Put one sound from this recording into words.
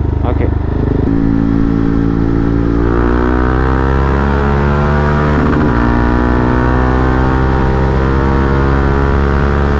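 Wind rushes past loudly as the motorcycle speeds up.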